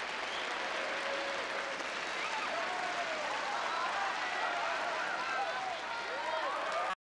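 A crowd applauds loudly and steadily.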